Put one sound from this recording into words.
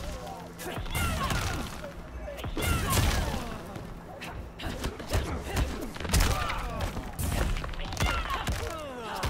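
Heavy blows land with sharp thuds and cracks.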